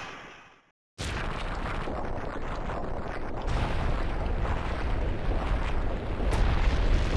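A deep rumbling roar rises and grows louder.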